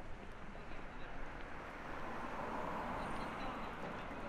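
A bicycle rolls past close by.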